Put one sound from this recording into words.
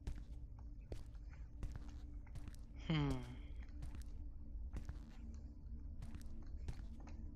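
Footsteps thud slowly across a hard floor.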